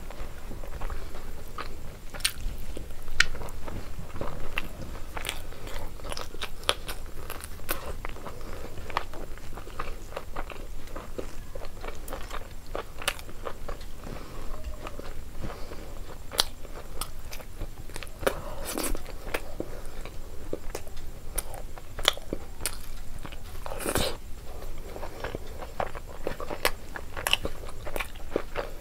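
Fingers squish and mix rice and food on a paper plate.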